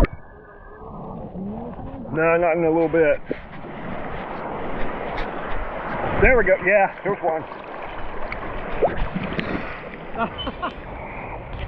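Water splashes and sloshes close by, outdoors on open water.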